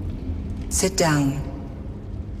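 A woman speaks softly and briefly, close by.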